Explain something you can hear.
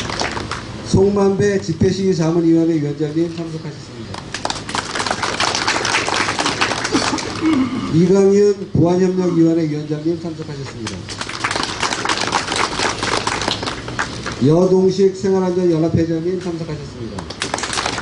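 A man speaks loudly nearby, in short phrases.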